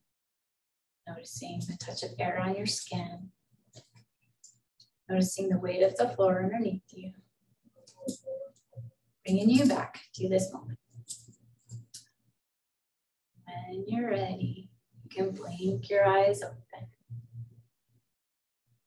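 A young woman speaks calmly through a microphone, heard as over an online call.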